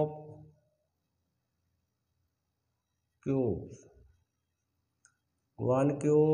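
A man speaks calmly close by, explaining in short phrases.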